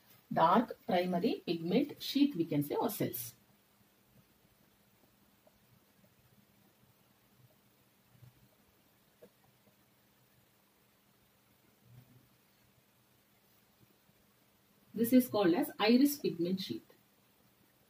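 A woman speaks calmly and clearly, close by, as if explaining.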